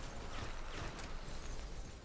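Rubble clatters as a metal structure collapses.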